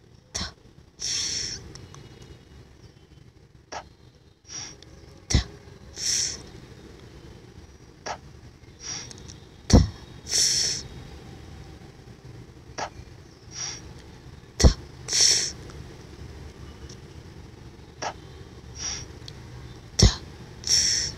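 A voice pronounces a soft breathy hiss again and again, through a small loudspeaker.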